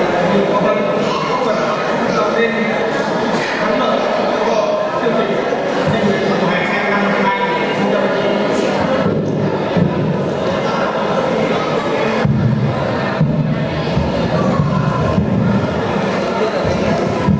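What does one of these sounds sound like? A young man speaks steadily through a microphone and loudspeakers in an echoing hall.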